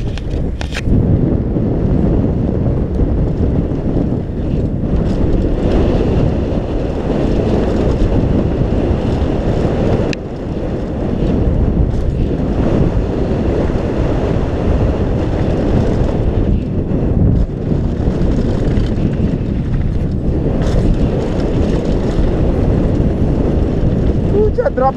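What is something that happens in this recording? Wind roars loudly across a helmet as a bike speeds downhill.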